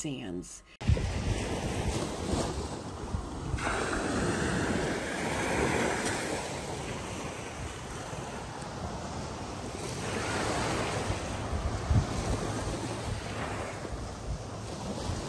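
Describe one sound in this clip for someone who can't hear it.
Wind rumbles across the microphone.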